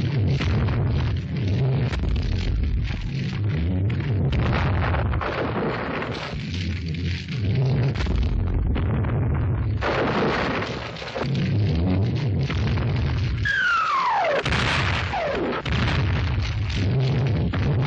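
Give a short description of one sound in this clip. Shells explode nearby with heavy, rumbling booms.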